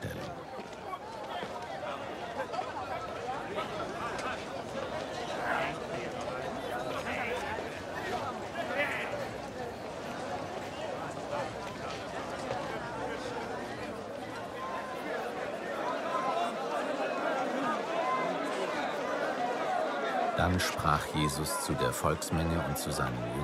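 A crowd of men murmurs and talks all around.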